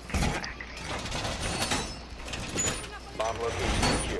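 A heavy metal panel clanks into place against a wall.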